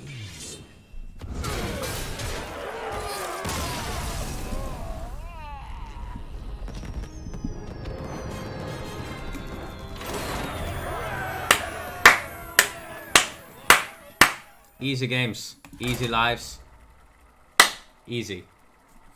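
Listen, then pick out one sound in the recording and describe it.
Game sound effects boom and chime with sharp clicks.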